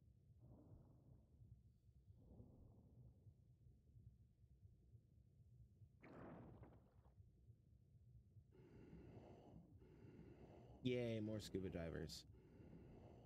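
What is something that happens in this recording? A young man speaks quietly and calmly into a close microphone.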